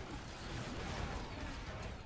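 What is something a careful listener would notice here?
A huge explosion roars and crackles.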